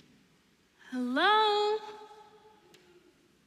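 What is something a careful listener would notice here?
A young woman sings a long, rising note in a large hall.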